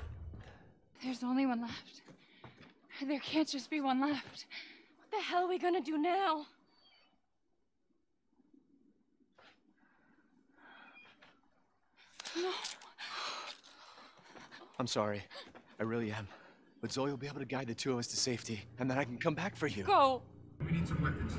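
A young woman speaks softly and with emotion.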